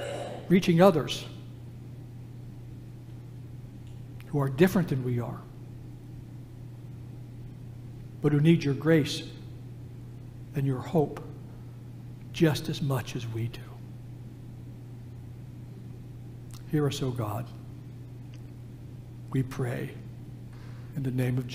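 An elderly man speaks slowly and solemnly through a microphone, pausing between phrases.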